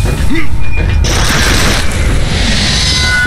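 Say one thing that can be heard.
An automatic rifle fires a rapid burst of shots.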